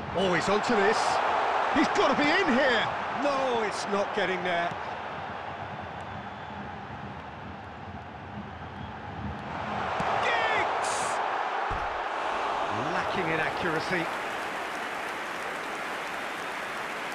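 A stadium crowd roars in a video game.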